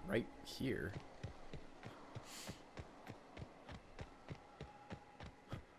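Footsteps crunch steadily over grass and dirt.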